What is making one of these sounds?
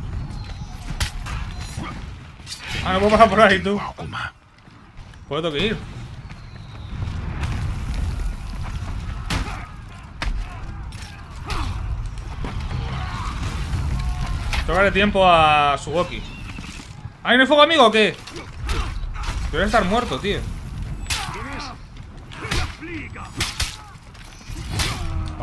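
Swords clash and armour clanks in a fight.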